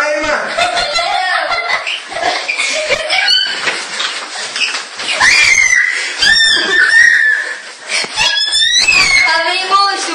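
A young girl shrieks and laughs excitedly nearby.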